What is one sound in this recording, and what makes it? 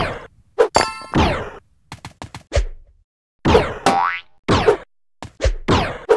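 Short game sound effects whoosh and pop as a character jumps.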